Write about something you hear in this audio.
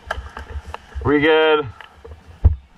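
A dirt bike engine revs up sharply and drops back.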